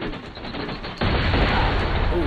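Fire roars close by.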